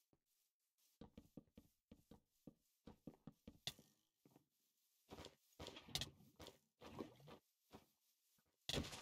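Sword blows land with short thuds in a video game fight.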